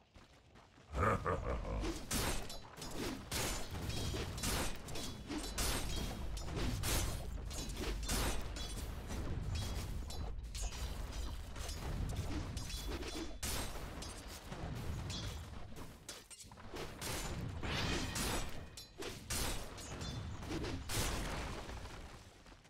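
Weapons strike and thud repeatedly in a fast fight.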